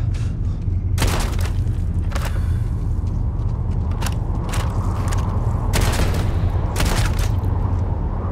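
A rifle fires several loud bursts.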